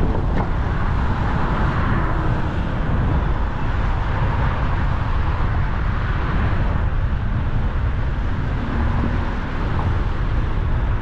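Wind rumbles steadily against the microphone outdoors.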